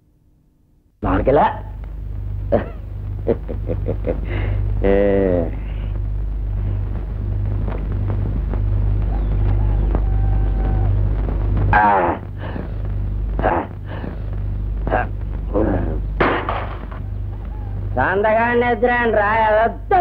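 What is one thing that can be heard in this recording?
A man talks with animation, nearby.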